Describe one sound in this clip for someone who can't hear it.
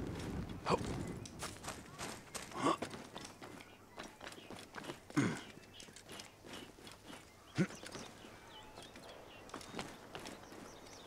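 Footsteps patter quickly across roof tiles and wooden planks.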